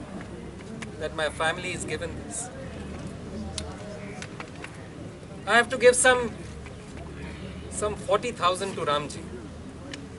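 A middle-aged man speaks with animation in short bursts, close by.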